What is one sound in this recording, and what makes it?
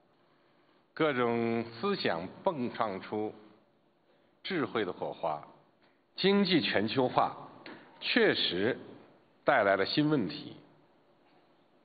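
A man speaks calmly and slowly into a microphone, amplified through loudspeakers.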